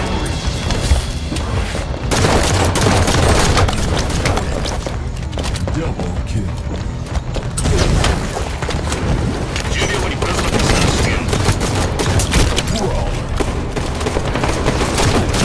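Rapid gunshots crack and rattle.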